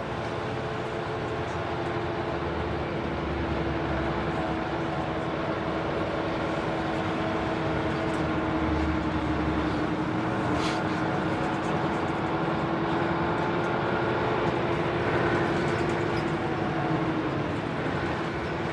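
A city bus rumbles along as it drives.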